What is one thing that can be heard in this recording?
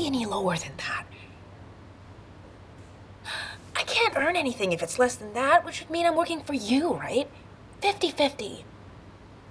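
A young woman speaks pleadingly, close by.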